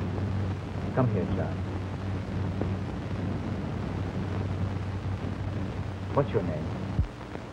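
A woman speaks firmly.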